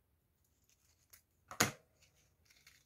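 Scissors snip once.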